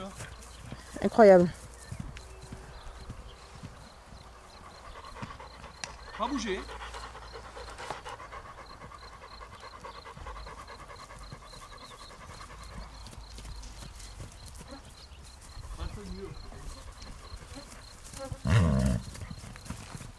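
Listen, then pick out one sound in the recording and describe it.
A horse whinnies loudly nearby.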